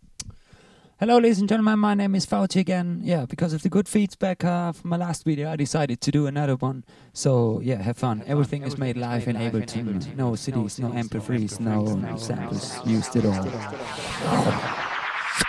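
A young man's voice loops in repeating layers.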